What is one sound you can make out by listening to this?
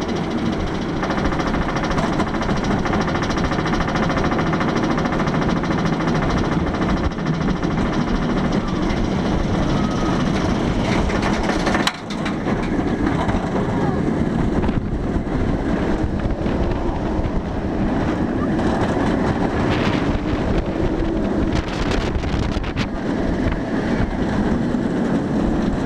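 A roller coaster train clatters and rumbles along its track.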